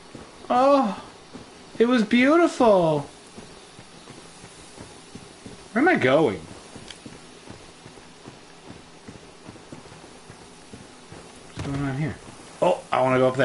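A man talks in short, animated bursts into a close microphone.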